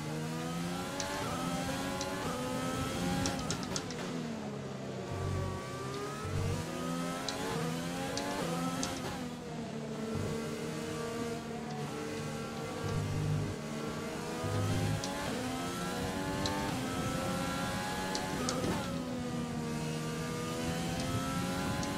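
A racing car's gears click sharply as they shift.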